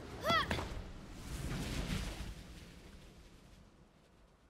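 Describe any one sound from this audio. A magical portal whooshes loudly.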